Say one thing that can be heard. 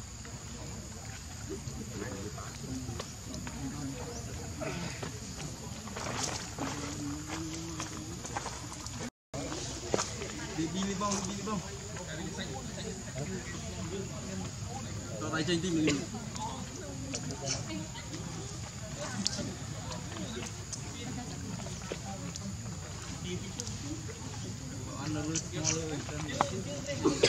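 A baby monkey suckles with soft wet smacking sounds.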